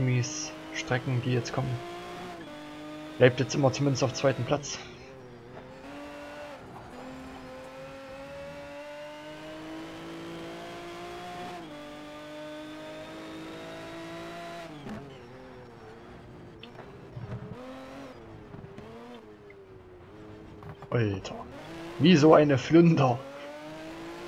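A racing car engine crackles and pops while downshifting into corners.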